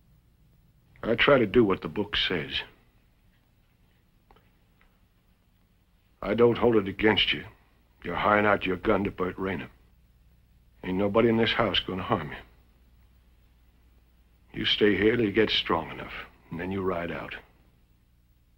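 An older man speaks sternly and gruffly, close by, in short bursts.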